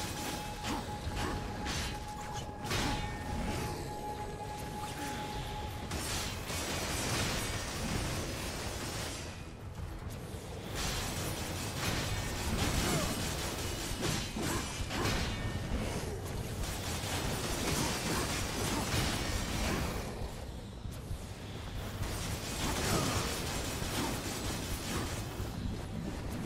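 Swords clash and slash in rapid fighting.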